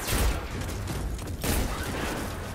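A beam weapon hums and crackles.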